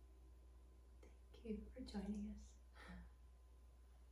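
A woman speaks softly and briefly nearby.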